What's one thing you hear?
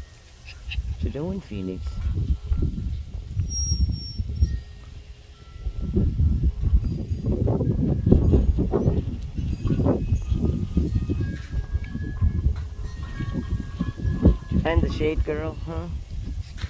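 A puppy lets out a high, wavering howl.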